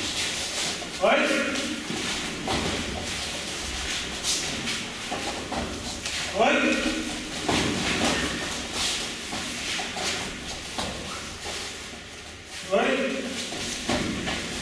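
Young men give short, sharp shouts as they kick.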